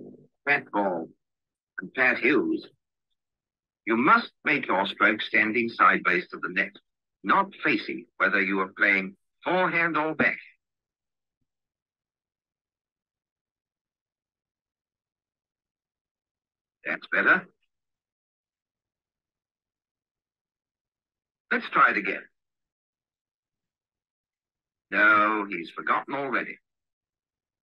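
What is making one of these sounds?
A man speaks calmly through a microphone on an online call.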